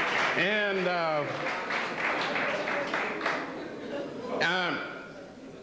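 An elderly man speaks slowly and expressively into a microphone.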